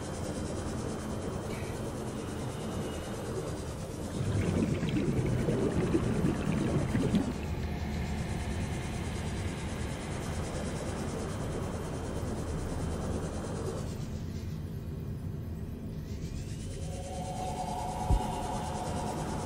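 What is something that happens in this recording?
A small submarine hums steadily as it glides underwater.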